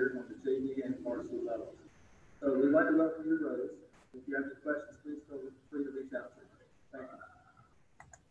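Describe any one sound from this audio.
A man speaks calmly to the listener, heard through a computer's speakers over an online call.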